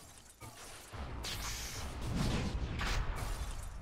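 A magic blast whooshes and roars.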